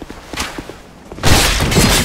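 Weapons clash and thud loudly in a fight.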